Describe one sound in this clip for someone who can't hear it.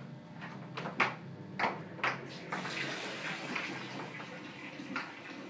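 A door latch clicks and rattles nearby.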